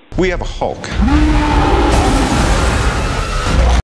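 Explosions boom and rumble.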